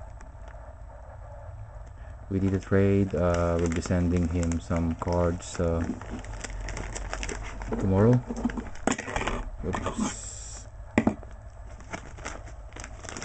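A plastic mailer crinkles as it is handled.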